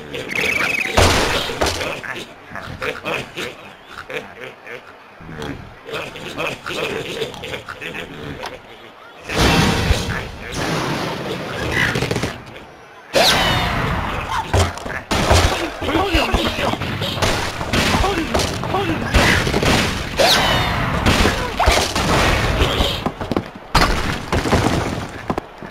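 Wooden blocks crash and topple.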